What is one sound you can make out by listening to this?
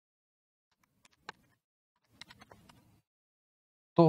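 Calculator keys click under a finger.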